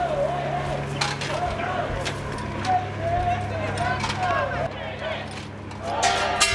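Hands bang and rattle on glass doors.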